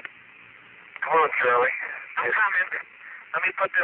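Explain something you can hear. A man speaks over a crackling radio link.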